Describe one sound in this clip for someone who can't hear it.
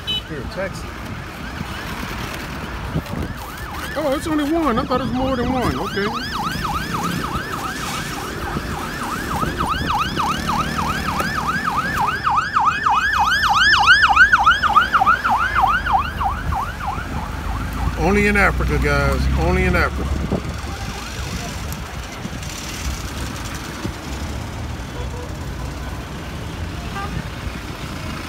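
Traffic rumbles along a busy street outdoors.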